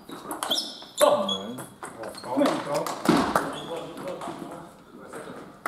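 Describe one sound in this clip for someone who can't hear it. A man cheers and shouts in a hall with echo.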